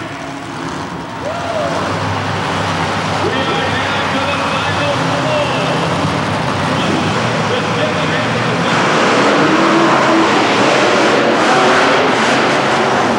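A monster truck engine roars loudly in a large echoing arena.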